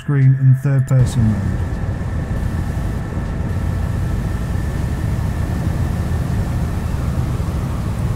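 Water churns and splashes behind a moving boat.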